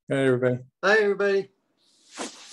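A man speaks briefly and calmly through an online call.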